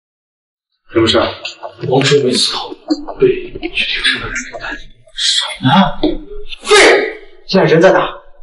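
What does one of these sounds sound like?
A young man speaks sharply, close by.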